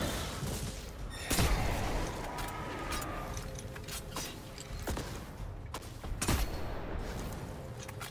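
Electric blasts crackle and explode loudly.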